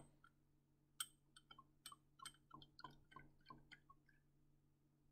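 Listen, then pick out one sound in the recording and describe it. Liquid trickles and drips into a small glass beaker.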